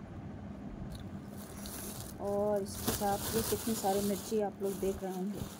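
A plastic bag rustles and crinkles.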